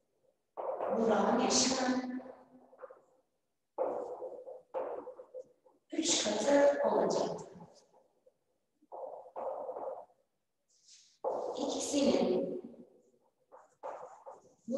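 A young woman speaks calmly and clearly, as if explaining.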